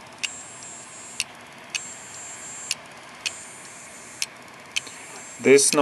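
A hard drive clicks repeatedly.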